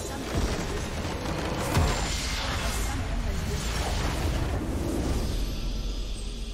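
Magic blasts crackle and boom in a loud burst.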